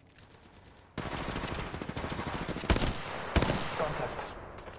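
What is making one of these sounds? An automatic rifle fires in short bursts.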